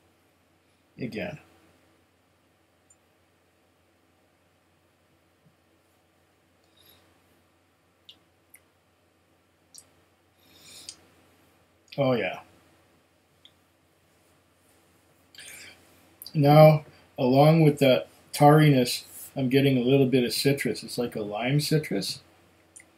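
A middle-aged man speaks calmly and close by, through a microphone.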